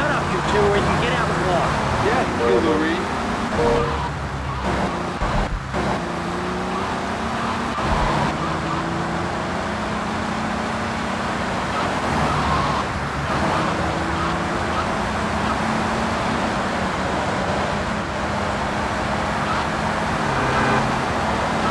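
A car engine hums steadily as a taxi drives along.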